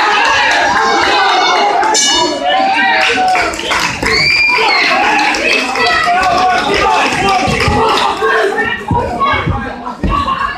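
A crowd of spectators talks and cheers loudly in an echoing hall.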